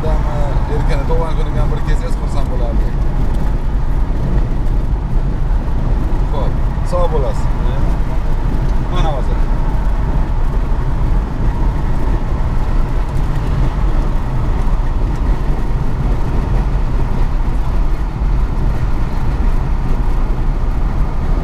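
A car drives on a highway with a steady low rumble.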